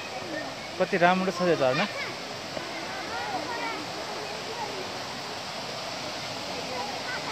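A small waterfall splashes and rushes steadily over rocks.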